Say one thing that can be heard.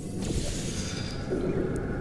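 A laser beam hums steadily.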